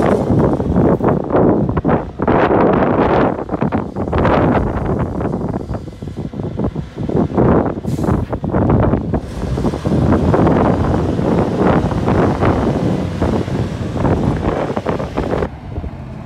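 A forklift engine rumbles loudly and unevenly close by.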